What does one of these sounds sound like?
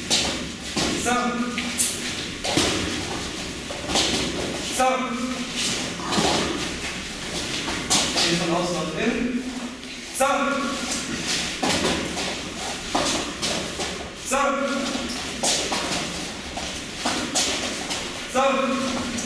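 A man shouts short commands in an echoing room.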